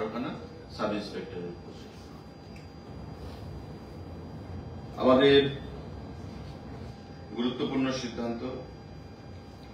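A man speaks briefly and haltingly into a microphone.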